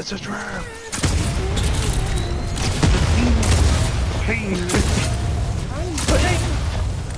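Gunfire and energy blasts crackle and boom in a video game battle.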